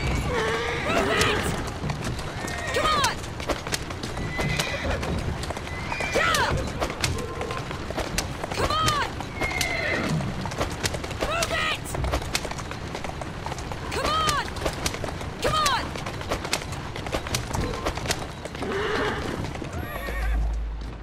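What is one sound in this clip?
Horse hooves clatter quickly on a cobbled street.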